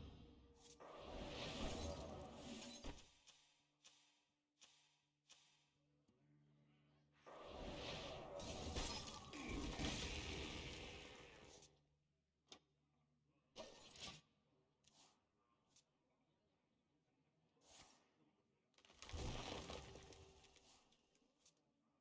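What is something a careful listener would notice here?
Magical game sound effects swell with shimmering bursts.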